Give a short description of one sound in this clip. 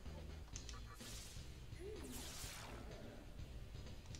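An electric spell crackles and zaps.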